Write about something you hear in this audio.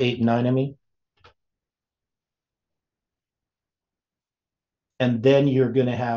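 An elderly man speaks calmly into a microphone, as on an online call.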